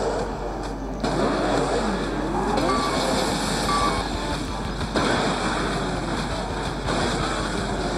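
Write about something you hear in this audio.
A racing car engine roars and revs at high speed.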